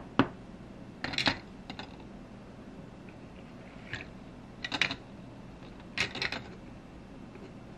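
A plastic merry-go-round rattles as it is turned.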